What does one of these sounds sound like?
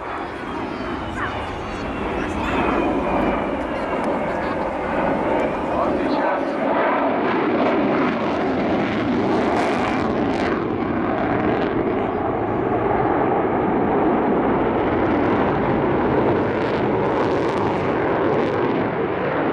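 A jet engine roars loudly overhead, its rumbling rising and falling as the aircraft turns.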